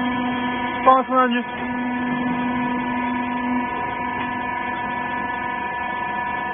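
A large machine hums steadily.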